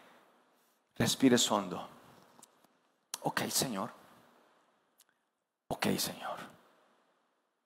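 A man speaks with emphasis into a microphone in an echoing hall, in short bursts with pauses.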